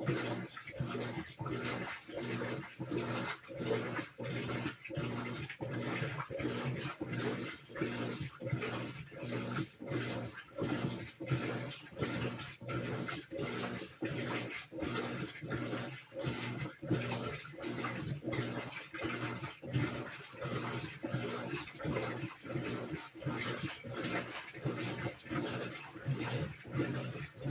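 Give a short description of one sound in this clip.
A top-load washing machine agitates during a rinse, water sloshing in a quick rhythm.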